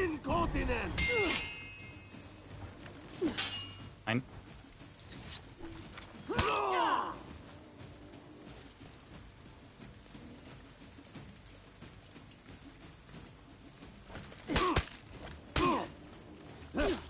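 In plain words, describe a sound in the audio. Steel swords clash and ring in a fight.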